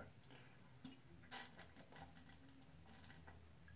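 A man gulps down a drink from a bottle, swallowing loudly.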